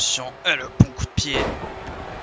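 A body slams heavily onto a wrestling ring mat.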